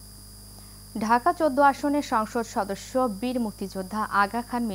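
A young woman reads out the news calmly and clearly into a microphone.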